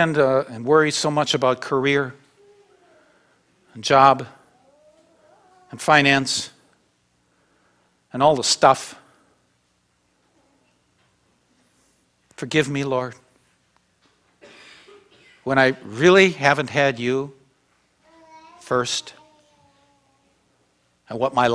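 An elderly man speaks calmly through a microphone in an echoing room, pausing often.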